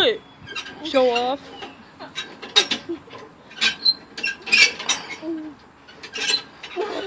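A young child talks and squeals excitedly nearby.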